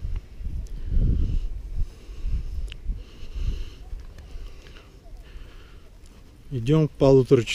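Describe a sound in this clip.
Wind blows outdoors, buffeting the microphone in gusts.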